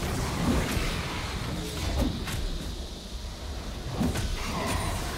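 Game combat effects sound out with sharp hits and magical bursts.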